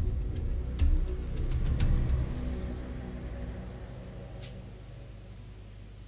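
A low engine rumble fades away.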